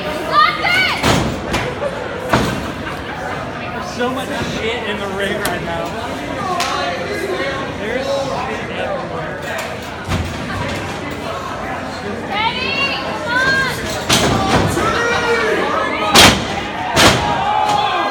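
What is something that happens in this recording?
Wrestlers' bodies slam onto a ring mat with loud thuds.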